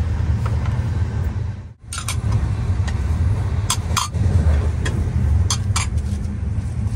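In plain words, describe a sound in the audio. Plates clatter as they are set down.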